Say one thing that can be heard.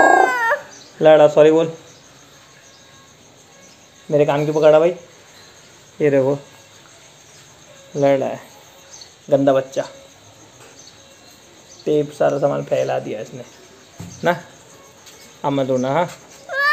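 A young man speaks in short, playful phrases up close.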